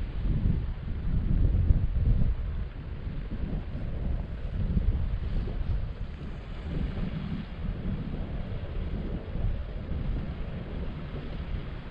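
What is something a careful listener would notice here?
Strong wind gusts and rumbles outdoors.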